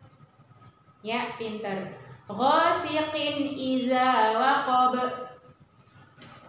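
A woman chants slowly and clearly into a close microphone.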